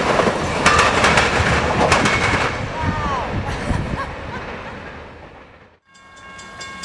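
A train rumbles loudly along the tracks.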